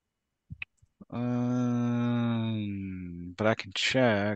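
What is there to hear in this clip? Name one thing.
A man draws out a long word in a deep voice over an online call.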